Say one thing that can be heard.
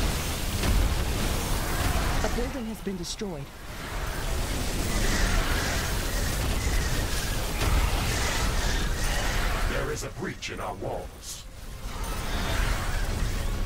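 Explosions and weapon fire rumble and crackle steadily.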